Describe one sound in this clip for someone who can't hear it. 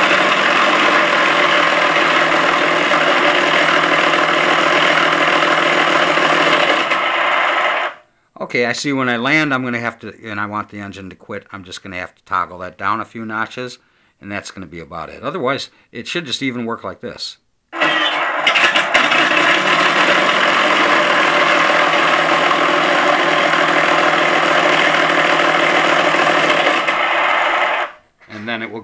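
A radio controller gives out a loud, steady electronic buzz.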